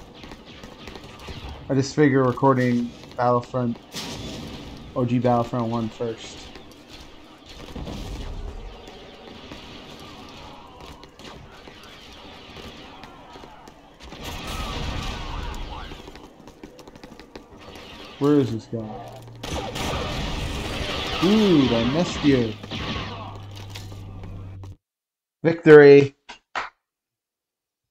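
Blasters fire in sharp bursts.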